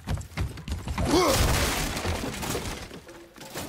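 Wooden boards crash and splinter.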